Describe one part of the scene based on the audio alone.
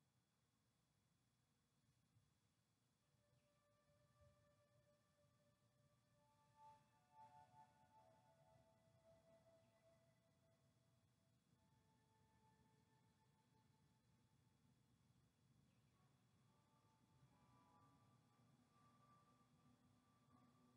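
A dancer's shoes thump softly on a carpeted floor.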